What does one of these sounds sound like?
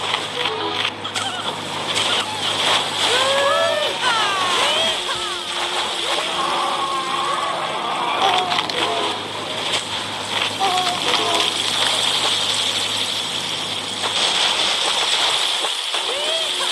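Water splashes and churns steadily.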